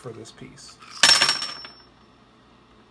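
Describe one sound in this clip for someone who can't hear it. A metal part clinks against a hard surface and rings briefly.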